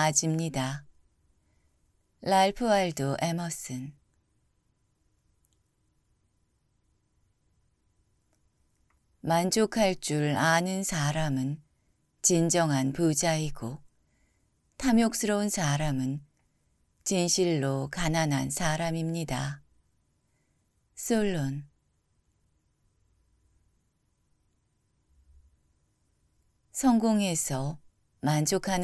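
A man reads out calmly and closely into a microphone, with pauses between phrases.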